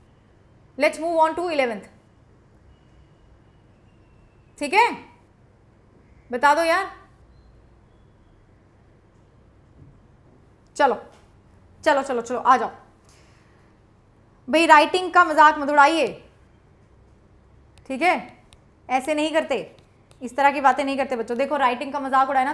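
A young woman speaks calmly into a close microphone, in short bursts with pauses.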